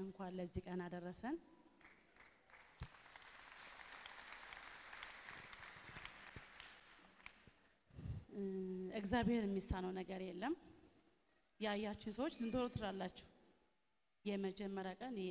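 A woman speaks with emotion through a microphone, heard over loudspeakers.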